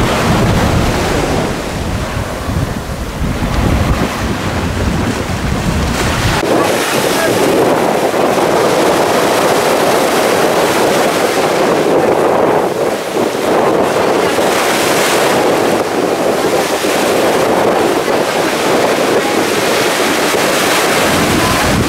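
Small waves wash and break on a sandy shore.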